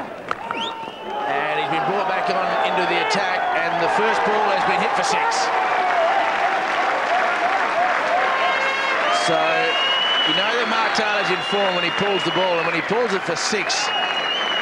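A large crowd roars and chatters in a stadium.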